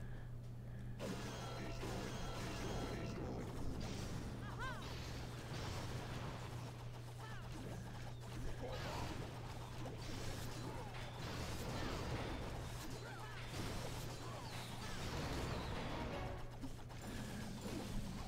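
Explosions boom and crackle in a busy battle.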